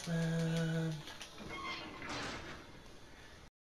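An iron gate creaks and clangs shut.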